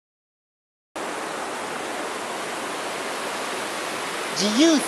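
A river rushes steadily.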